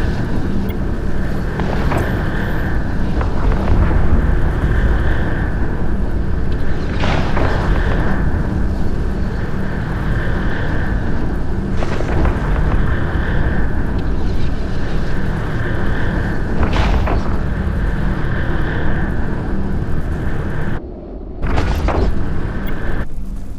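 A deep spaceship engine rumbles steadily.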